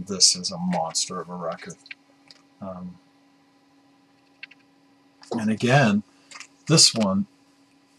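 A middle-aged man talks calmly and close to a microphone.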